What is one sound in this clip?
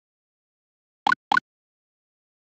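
Fireballs are thrown with short electronic blips.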